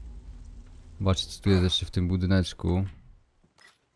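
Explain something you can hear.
A man speaks into a microphone close up.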